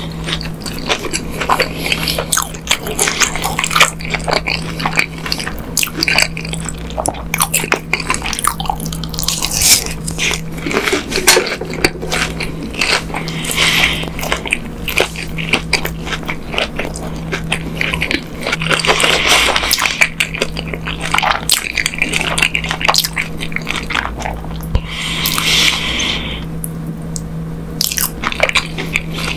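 A man chews food with wet, crunchy mouth sounds close to a microphone.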